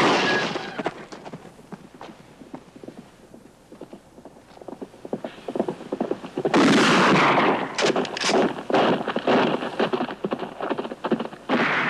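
Horse hooves gallop fast over dry ground.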